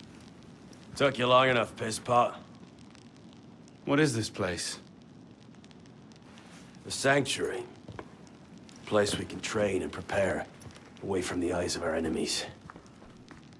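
A man speaks calmly and low, close by.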